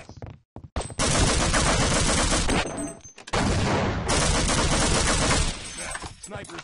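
A submachine gun fires loud rapid bursts.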